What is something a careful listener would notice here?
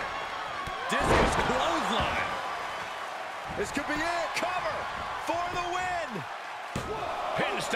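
A body slams onto a mat with a heavy thump.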